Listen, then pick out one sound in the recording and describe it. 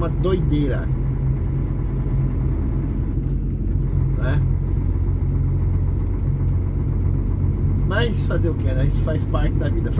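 A vehicle's engine hums steadily while driving on a road.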